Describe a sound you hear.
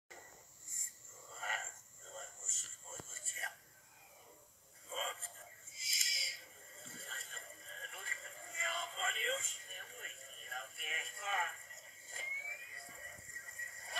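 Film music plays faintly from small laptop speakers.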